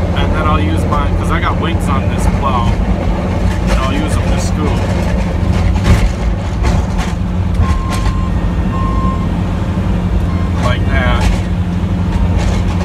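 A snow plow blade scrapes across pavement.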